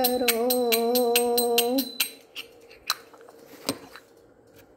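Small hand cymbals clink in a quick, even rhythm, then slow and stop.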